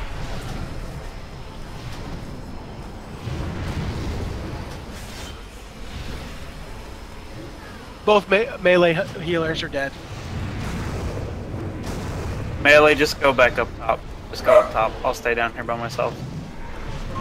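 Fantasy combat effects crackle and whoosh steadily.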